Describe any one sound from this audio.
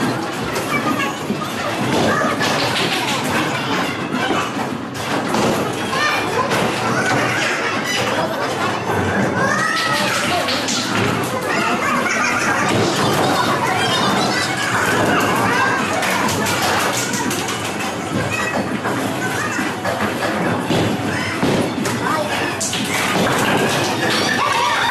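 Several people chatter and call out in a large echoing hall.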